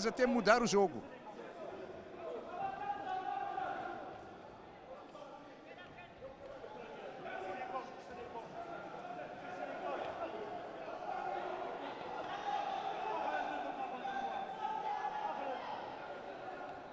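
A crowd murmurs and shouts.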